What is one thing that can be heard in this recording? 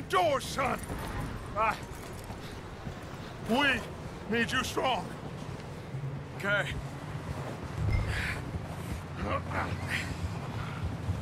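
Horses walk through deep snow with soft, muffled hoofbeats.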